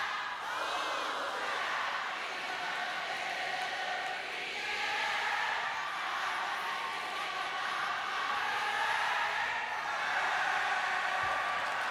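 A man speaks energetically into a microphone over loudspeakers.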